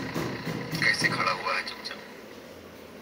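A man speaks close to a phone microphone.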